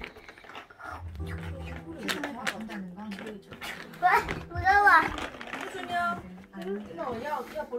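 A plastic case knocks and rattles as a child carries it.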